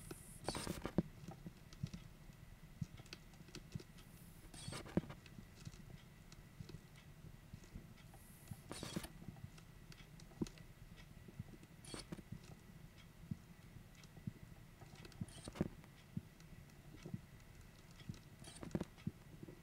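A rubber bulb squeezes air into a blood pressure cuff with short puffs every few seconds.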